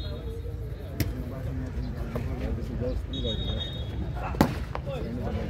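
A volleyball is struck hard with a slap.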